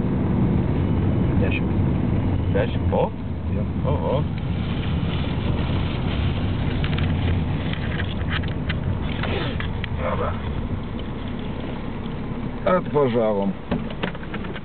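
A car engine hums low and steady from inside the car.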